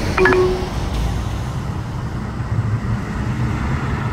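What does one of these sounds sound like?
An old hot rod's engine rumbles as it approaches.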